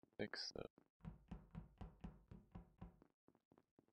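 Quick light footsteps patter on a hard floor.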